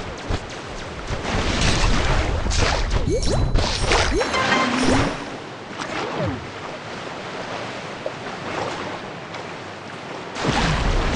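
Water splashes and churns around a large swimming shark.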